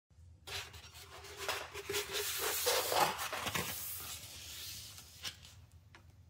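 Hands shuffle and tap against things close by.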